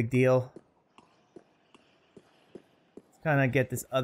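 Footsteps thud quickly on stone.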